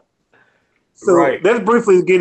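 A third man talks cheerfully over an online call.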